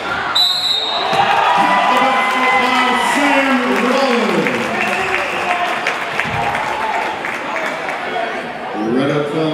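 A crowd cheers loudly in an echoing gym and then quiets down.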